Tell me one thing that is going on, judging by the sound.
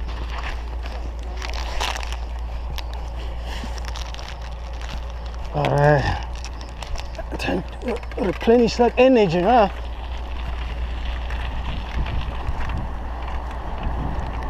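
Wind rumbles over the microphone of a moving bicycle.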